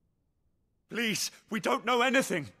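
A young man pleads loudly and desperately, close by.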